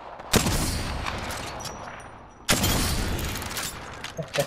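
Heavy gunshots boom and echo.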